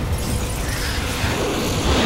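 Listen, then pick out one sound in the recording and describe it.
An explosion booms with a deep roar.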